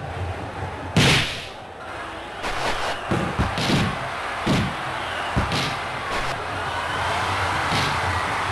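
A football is kicked with short, sharp thumps.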